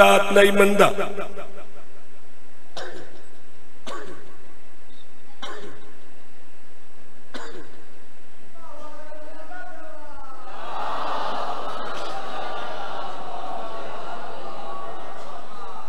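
A man chants with emotion into a microphone, heard through loudspeakers.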